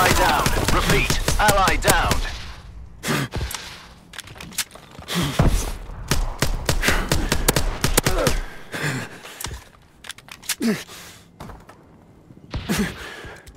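A gun fires in rapid bursts of sharp shots.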